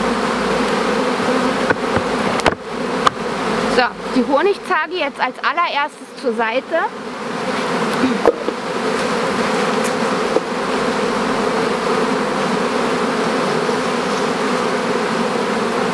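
Bees buzz steadily in a dense swarm.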